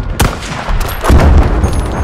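A rifle bolt clicks as it is worked.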